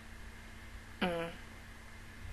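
A young woman makes a short, falling vocal sound close to a microphone.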